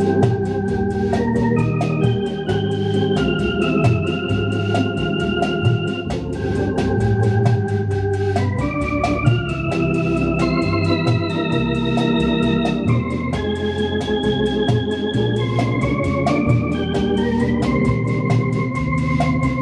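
An electric organ plays a sustained melody with full chords.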